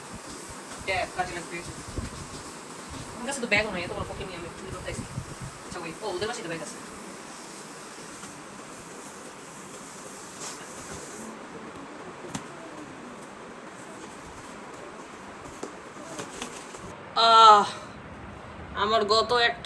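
A teenage boy talks nearby.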